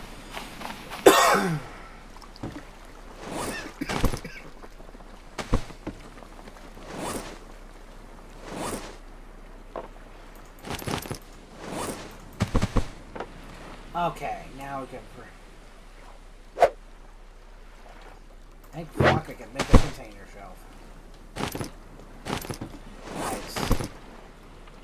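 Wooden planks knock and thud as they are set in place.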